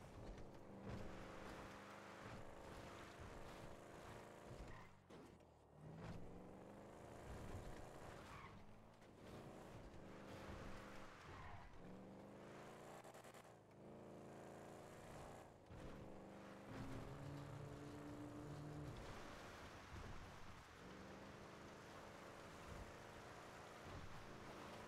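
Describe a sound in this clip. Tyres crunch and hiss over a gravel road.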